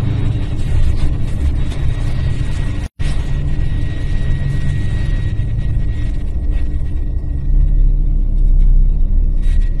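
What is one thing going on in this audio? A collapsing building roars with a deep, heavy rumble.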